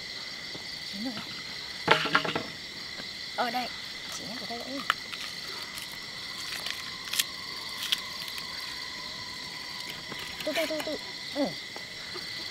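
Two young women talk with each other nearby.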